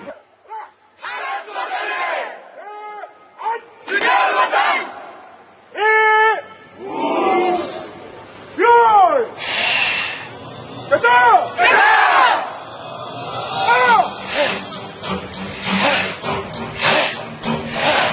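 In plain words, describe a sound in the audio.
A group of young men shout loudly in unison outdoors.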